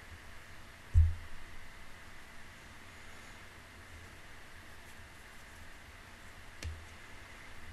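A young woman's arm bumps a microphone with a dull thump.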